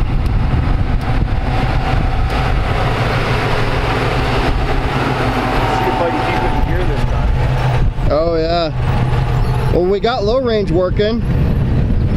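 An old truck engine rumbles and revs up close.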